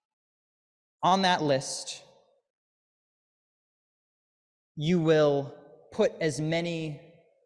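A young man speaks with animation through a microphone, in short bursts with pauses.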